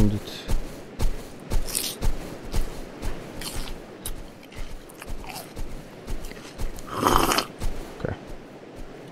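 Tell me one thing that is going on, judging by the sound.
Footsteps thud steadily on soft ground.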